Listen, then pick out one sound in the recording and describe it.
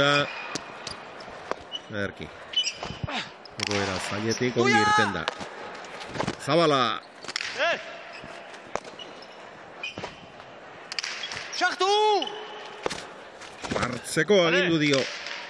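A hard ball smacks sharply against a wall, echoing in a large hall.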